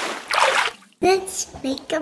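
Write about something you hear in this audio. A young girl speaks cheerfully close by.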